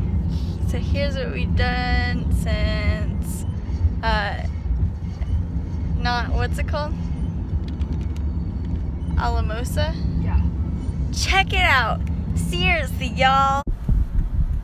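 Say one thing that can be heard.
A young woman talks cheerfully and laughs close by.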